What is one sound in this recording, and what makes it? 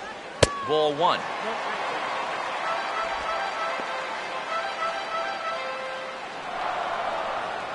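A stadium crowd cheers and murmurs.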